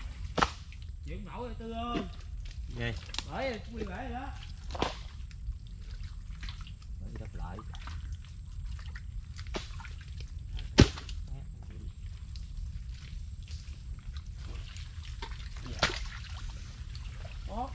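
Wet mud squelches and slaps as hands dig into it.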